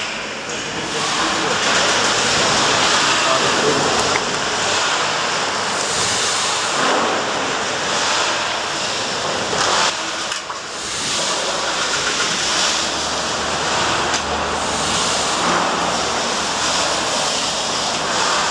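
A large steam engine runs with a steady rhythmic chugging and hiss.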